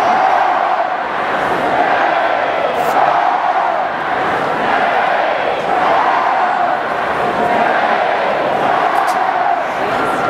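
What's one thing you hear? A marching band plays loud sustained brass chords outdoors.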